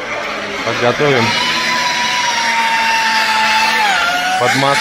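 A power tool whirs steadily, then drops in pitch.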